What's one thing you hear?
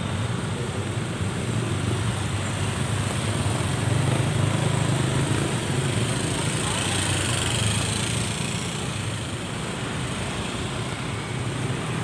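Motorbike engines hum and putter as they pass close by.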